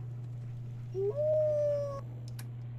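A dog gives a short, playful howl close by.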